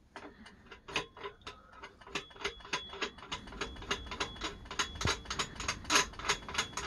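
A ratchet clicks rapidly as it turns.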